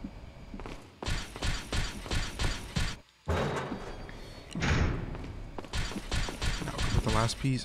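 Footsteps tap on a hard stone floor.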